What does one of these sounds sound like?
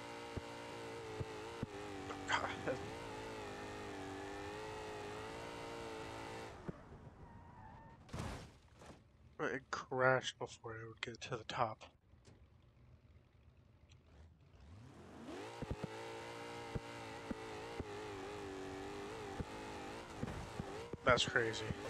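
A car engine roars at high revs.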